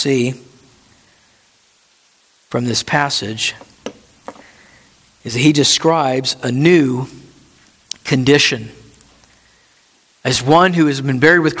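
A man speaks calmly through a headset microphone, in short phrases with pauses.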